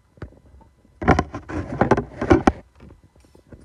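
A hand fumbles and rubs against the microphone close up.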